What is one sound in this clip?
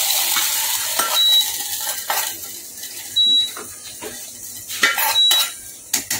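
A metal lid clinks against a metal pot.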